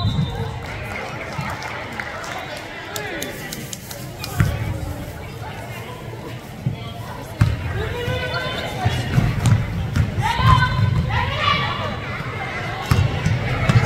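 A basketball bounces on a hardwood floor in a large echoing gym.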